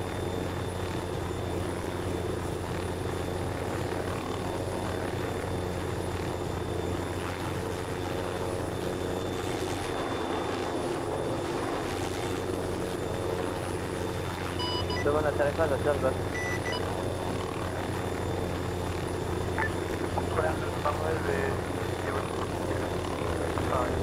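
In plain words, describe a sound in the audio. A helicopter's rotor whirs steadily as it hovers close by.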